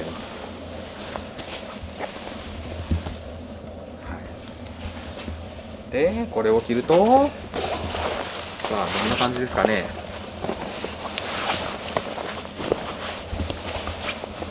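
Stiff cloth rustles as a jacket is handled.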